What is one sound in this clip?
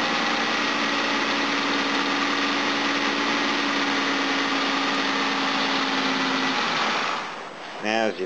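A car engine idles with a loud, steady roar.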